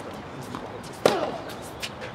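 A tennis ball is hit back from across the court.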